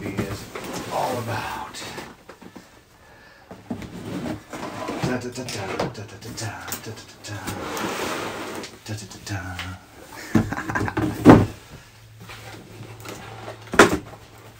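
Cardboard boxes rustle and scrape as they are handled.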